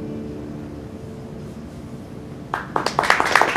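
An acoustic guitar rings out as a chord fades.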